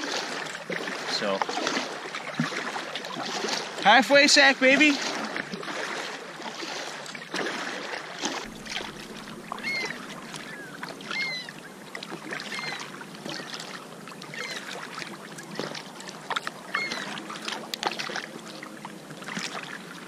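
A canoe paddle dips and splashes through calm water.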